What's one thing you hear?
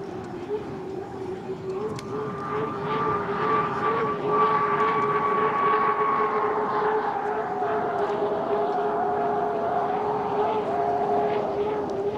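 A racing boat's engine roars loudly and steadily as it speeds past.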